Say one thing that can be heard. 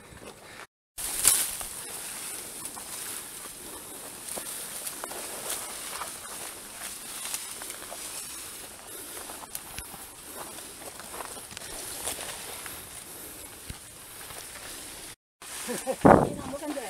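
Leaves and branches rustle as hikers brush through them.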